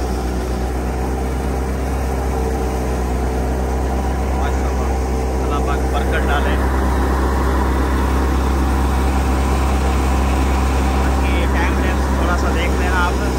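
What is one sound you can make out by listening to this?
Chaff blows out in a rushing stream.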